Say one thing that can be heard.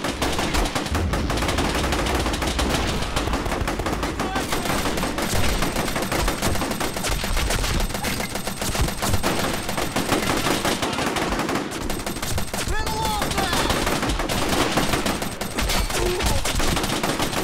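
Explosions boom in low rumbles.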